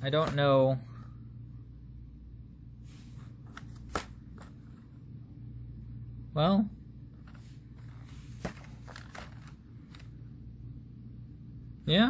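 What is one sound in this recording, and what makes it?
Plastic model train cars click softly as a hand handles them.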